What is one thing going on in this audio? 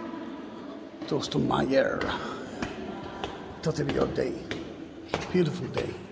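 Footsteps echo on stone stairs in a large hall.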